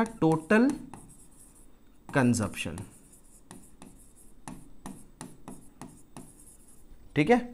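A marker squeaks and taps as it writes on a board.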